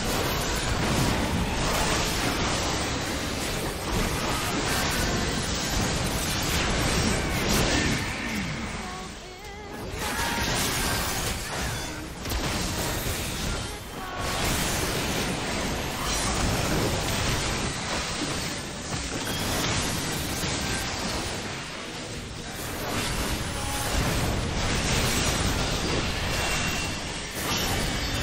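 Game combat sounds clash and burst continuously.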